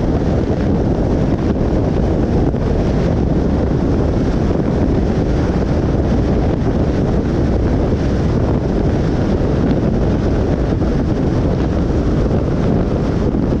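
Wind rumbles against a moving vehicle.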